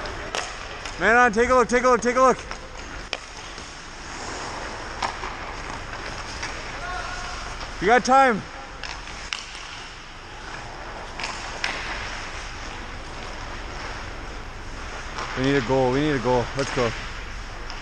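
Men shout across an echoing rink.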